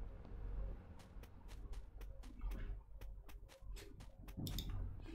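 Quick footsteps patter in a steady rhythm.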